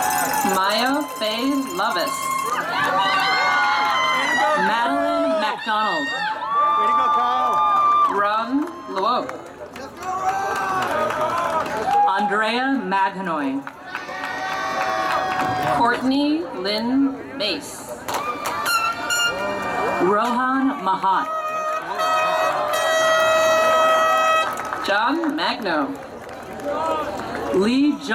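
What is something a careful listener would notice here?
A man reads out steadily over a loudspeaker outdoors.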